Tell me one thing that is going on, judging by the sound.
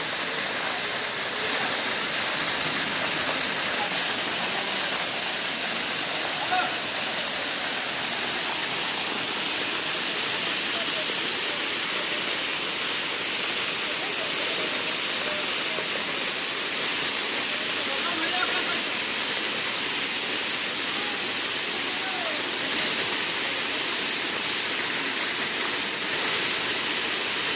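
A waterfall pours and splashes steadily onto rocks close by.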